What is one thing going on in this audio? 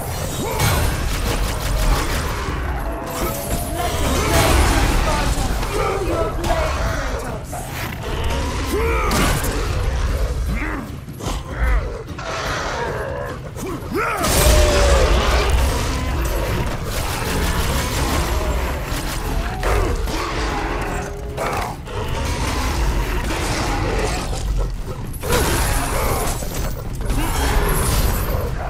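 Blades slash and strike flesh in a fierce fight.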